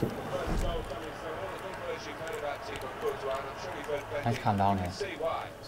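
A young man talks casually close to a microphone.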